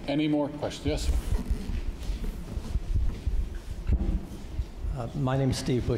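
A man speaks through a microphone in a hall.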